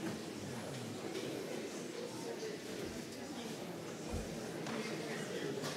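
A middle-aged man speaks calmly through a microphone in an echoing hall.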